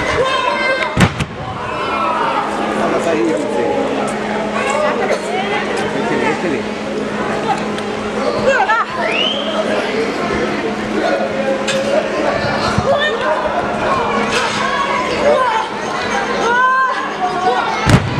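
A body slams hard onto a wrestling mat with a loud thud.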